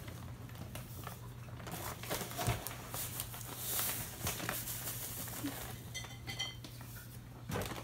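Liquid pours into a metal pot.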